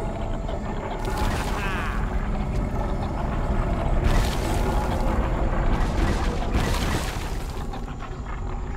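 Steam hisses loudly in bursts.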